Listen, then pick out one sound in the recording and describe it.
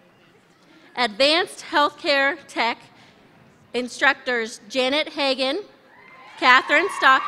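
A woman speaks clearly into a microphone, heard through loudspeakers in a large echoing hall.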